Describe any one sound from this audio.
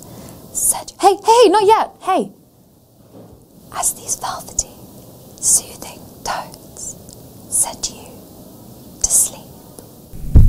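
A young woman speaks calmly and cheerfully to the listener, close by.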